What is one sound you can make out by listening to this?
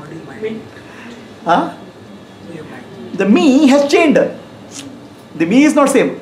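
A middle-aged man laughs.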